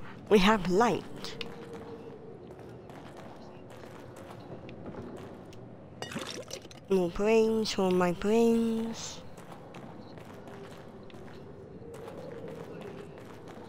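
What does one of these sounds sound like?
Footsteps crunch slowly on rocky ground and wooden boards.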